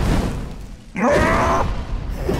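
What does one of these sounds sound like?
A fiery blast bursts and roars.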